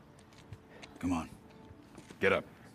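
A man groans and grunts in pain.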